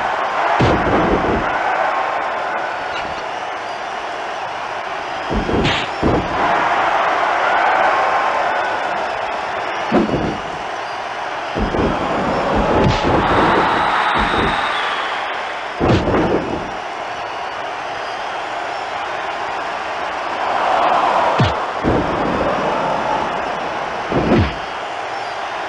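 Heavy thuds of bodies slamming onto a wrestling mat ring out.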